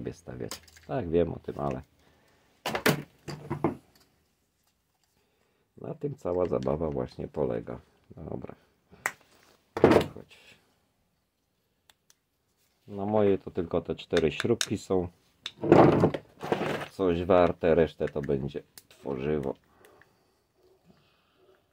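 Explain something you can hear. Small metal parts clink and knock as they are handled.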